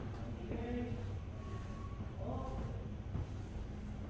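An eraser rubs across a board.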